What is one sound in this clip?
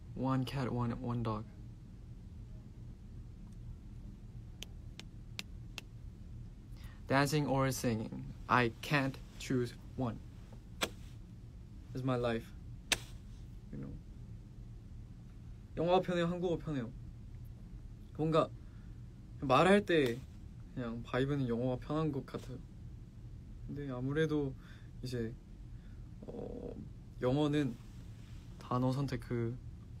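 A young man talks calmly and close to a phone microphone, in short bursts with pauses.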